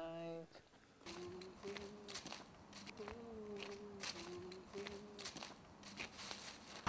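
Footsteps crunch through dry leaves and gravel.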